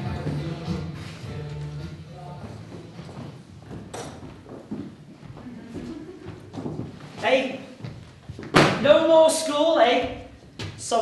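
A woman speaks clearly in a hall.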